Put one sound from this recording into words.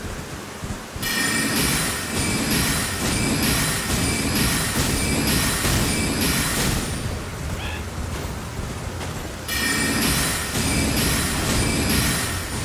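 Hooves thud as a horse gallops.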